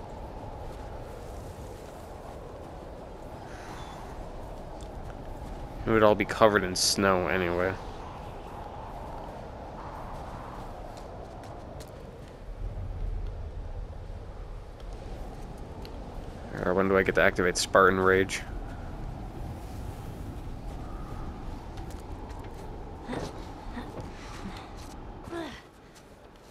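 Wind blows steadily in a snowstorm outdoors.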